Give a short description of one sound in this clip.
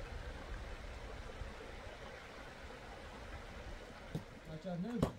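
Shallow stream water flows and gurgles over stones.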